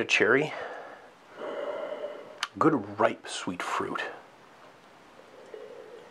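A man sniffs deeply.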